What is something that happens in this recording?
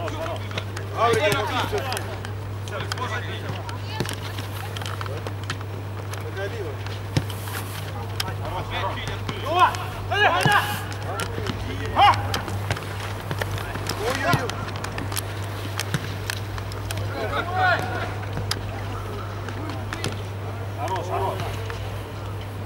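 Men shout to each other outdoors at a distance.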